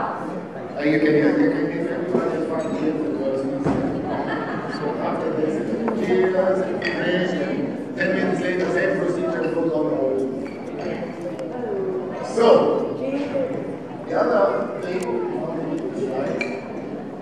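A man speaks with animation through a microphone over loudspeakers in a large echoing hall.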